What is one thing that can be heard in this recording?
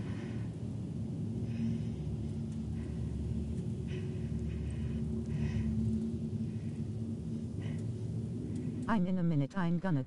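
A machine hums steadily and low nearby.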